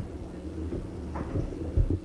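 A pen scratches across paper.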